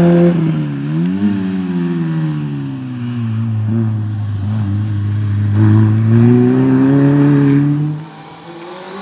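A rally car engine revs hard and shifts gears as the car speeds away.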